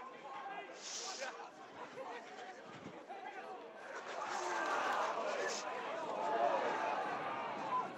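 A crowd of spectators cheers, growing louder as the play goes on.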